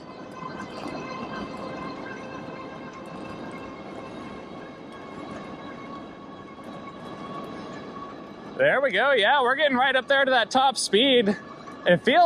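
Bike tyres roll and rumble over rough pavement.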